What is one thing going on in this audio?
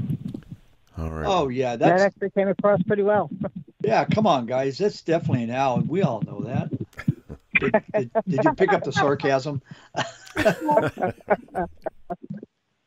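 A man speaks calmly and clearly into a microphone.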